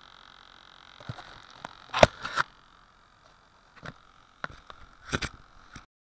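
A hand fumbles against the microphone with close scrapes and knocks.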